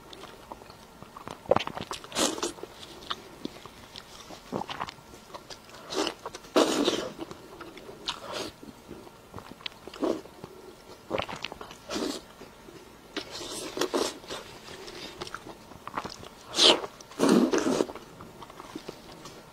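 Crispy food crunches loudly as a young woman bites into it.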